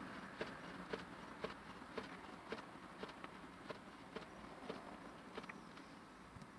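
A car's turn signal ticks at a steady pace, then stops.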